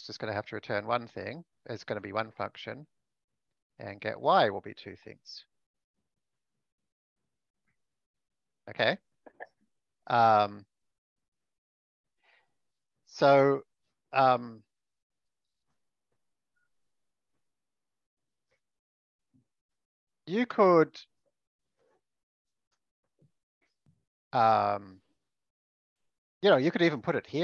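A man speaks calmly over an online call, with long pauses.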